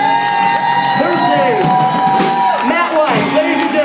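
A band plays loud electric guitars and drums.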